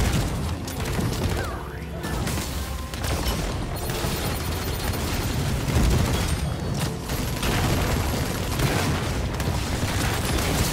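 Spell effects crackle and blast in rapid bursts.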